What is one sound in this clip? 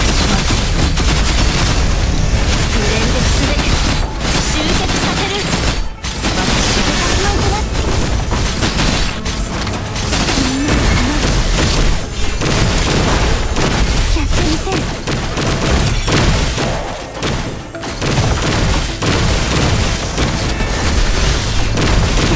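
Energy blasts and explosions crackle and boom.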